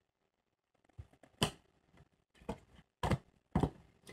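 A card taps onto a table.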